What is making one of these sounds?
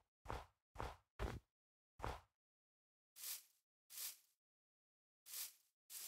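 Digging thuds come in quick, short bursts, one after another.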